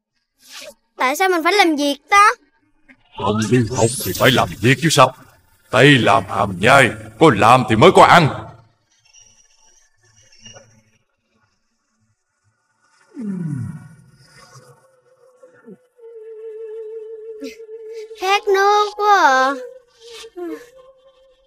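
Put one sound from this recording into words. A young boy's voice speaks with animation, close by.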